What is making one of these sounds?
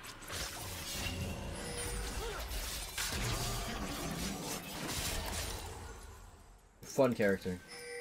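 Computer game spells whoosh and clash in a fight.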